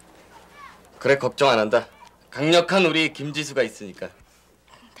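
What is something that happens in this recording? A young man talks loudly nearby.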